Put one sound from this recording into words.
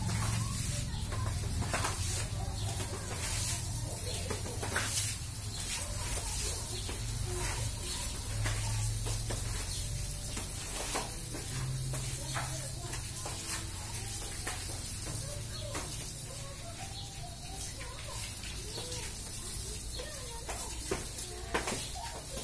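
A squeegee scrapes wet across a tiled floor.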